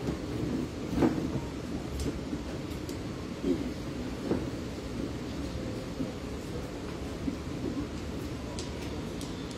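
A woman speaks into a microphone over a loudspeaker, in a roomy space.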